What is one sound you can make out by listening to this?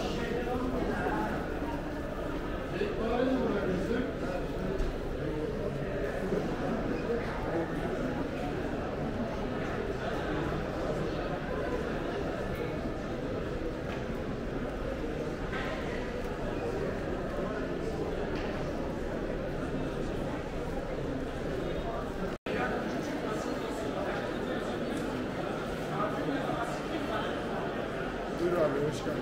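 A crowd chatters all around in a busy echoing hall.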